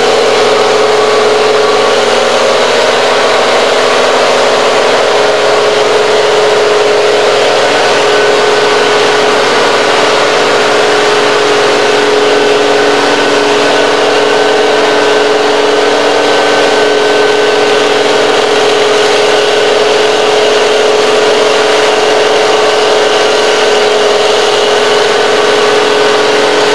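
A heavy diesel engine drones steadily nearby.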